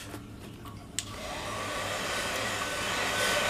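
A hair dryer starts up and blows with a steady whir.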